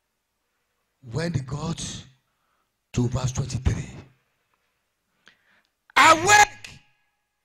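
A man speaks forcefully into a microphone over loudspeakers, in short bursts with pauses.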